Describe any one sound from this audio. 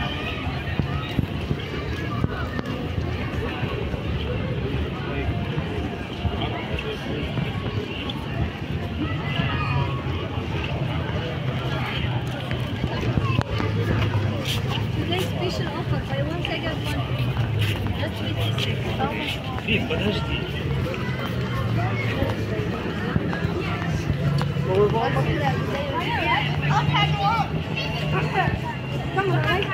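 A crowd of people murmurs and chatters nearby, outdoors.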